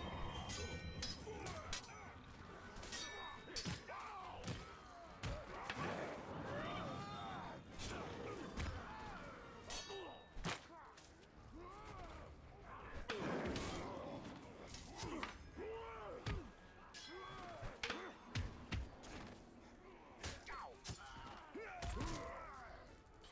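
Swords clash and strike in a fast game fight.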